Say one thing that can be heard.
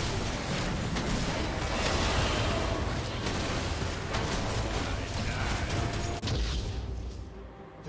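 Magic blasts and weapon hits clash and crackle in a rapid, noisy fight.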